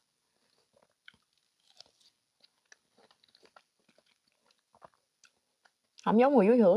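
A young woman chews juicy fruit close to a microphone.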